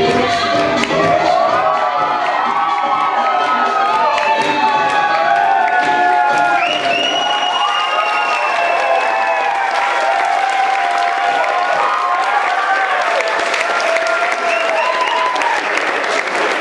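A crowd cheers and screams loudly nearby.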